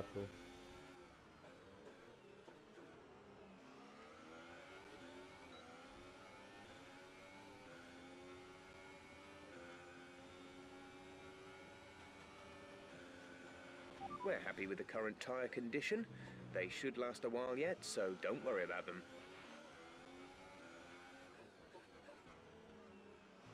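A racing car engine roars and whines as it revs up and down through the gears.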